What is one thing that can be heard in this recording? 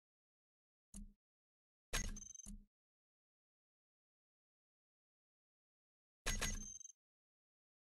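Menu buttons in a game give short clicks.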